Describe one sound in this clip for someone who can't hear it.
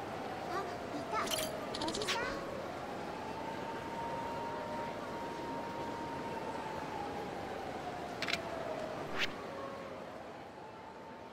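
A busy street hums with distant crowd noise.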